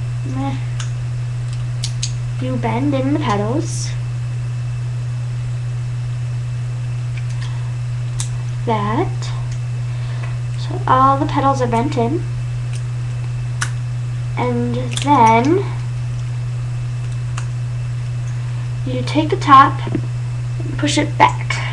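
Foil crinkles softly as hands fold it.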